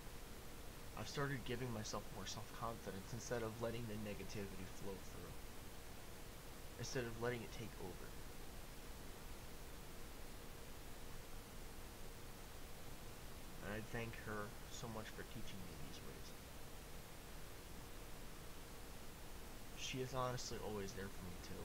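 A young man speaks calmly into a nearby microphone, pausing often.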